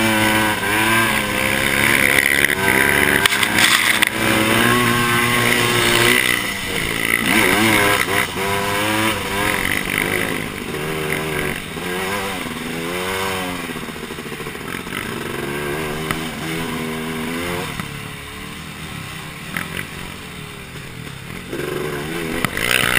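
A quad bike engine roars close by, revving up and down.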